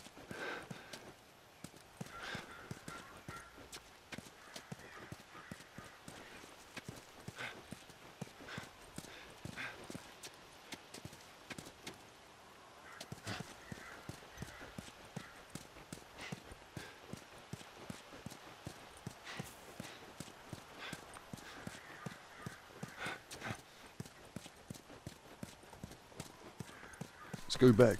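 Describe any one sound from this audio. Footsteps crunch over grass and gravel.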